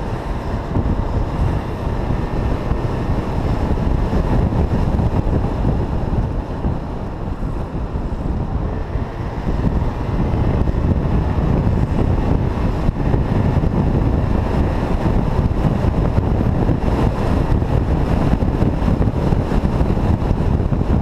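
A motorcycle engine drones steadily up close.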